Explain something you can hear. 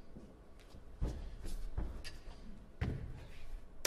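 Footsteps thump on a wooden stage floor.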